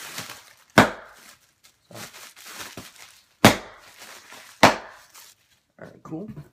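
Cardboard rustles and thumps as a box is handled up close.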